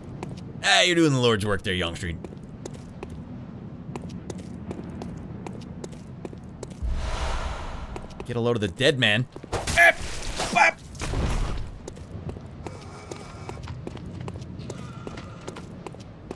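Footsteps tap on stone at a steady pace.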